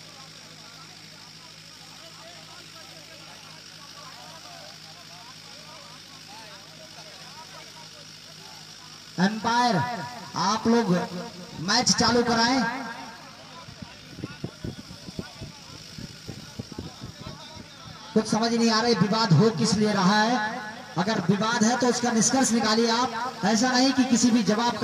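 A group of men talk over one another in the background.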